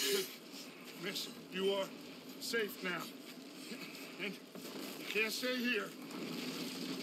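A man speaks calmly and reassuringly.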